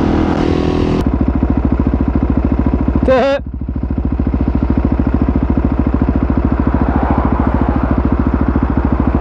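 A motorcycle engine idles with a fast, even putter.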